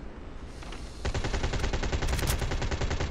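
A heavy rifle fires a burst of shots.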